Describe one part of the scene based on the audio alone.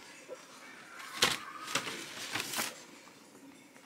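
Plastic bubble wrap rustles and crinkles.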